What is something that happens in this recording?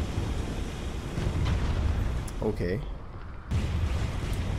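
A large explosion bursts and roars.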